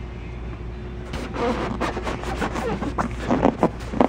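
A hand pats a padded seat cushion.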